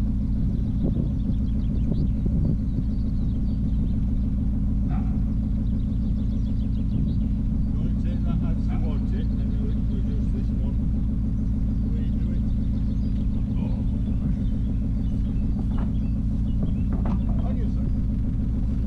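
Footsteps thud on a wooden pontoon.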